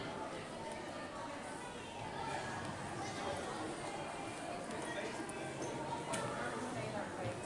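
Men and women chatter nearby in a large, echoing hall.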